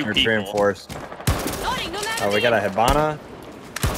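Gunshots crack from a rifle.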